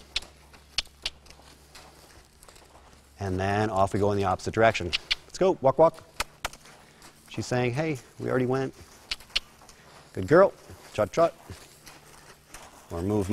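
Hooves thud softly on soft sand.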